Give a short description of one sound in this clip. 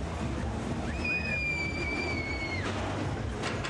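Metal wheels squeal briefly on the track.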